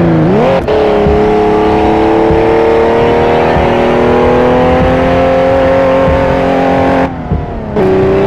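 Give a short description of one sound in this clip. A car engine drops briefly as the gear shifts, then picks up again.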